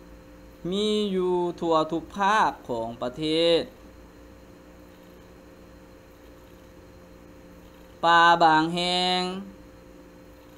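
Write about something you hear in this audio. A woman reads aloud slowly through a microphone, with long pauses.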